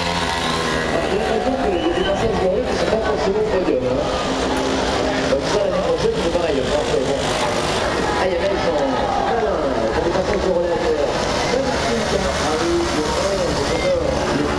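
Small moped engines buzz as they ride past.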